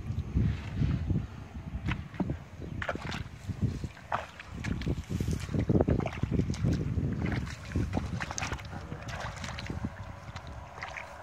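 Feet squelch and splash through shallow muddy water.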